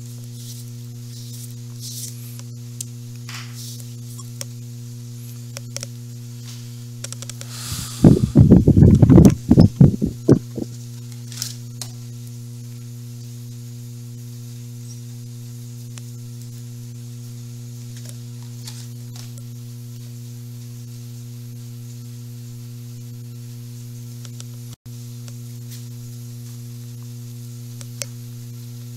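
Game pieces tap and slide on a tabletop board.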